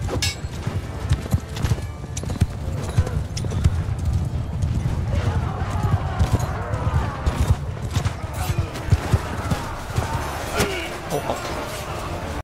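Weapons clash and thud in a battle.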